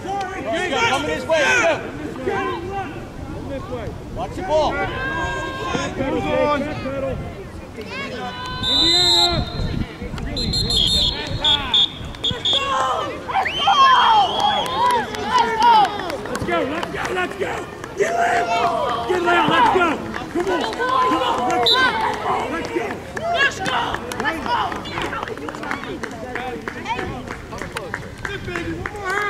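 Spectators cheer and shout from the sidelines outdoors.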